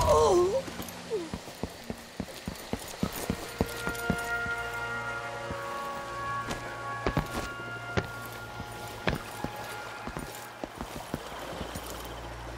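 Footsteps run quickly over stone and down steps.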